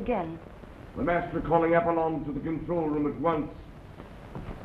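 A woman speaks nervously.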